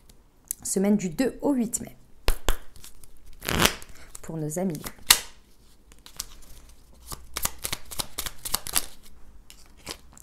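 Playing cards riffle and flick as a deck is shuffled by hand.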